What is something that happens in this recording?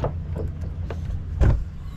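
A metal deck cap is twisted with a scraping click.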